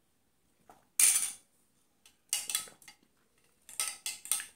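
A spoon clinks and rattles in a glass.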